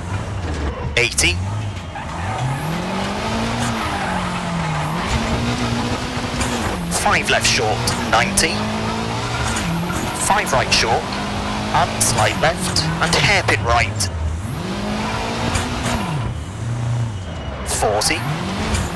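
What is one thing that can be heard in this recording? Stones clatter against the underside of a car.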